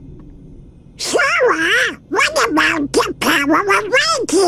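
A cartoon duck speaks in a squawky, garbled voice with animation.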